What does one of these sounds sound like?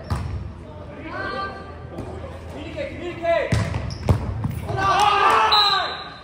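Young people call out and shout in a large echoing gym.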